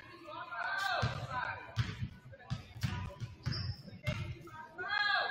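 A basketball bounces on a hard wooden floor several times.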